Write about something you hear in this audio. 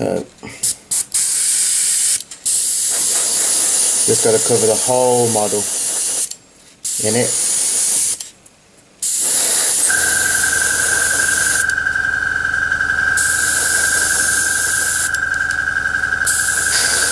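An airbrush hisses in short and long bursts of spraying.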